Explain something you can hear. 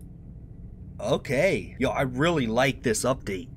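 A young man speaks with animation into a close microphone.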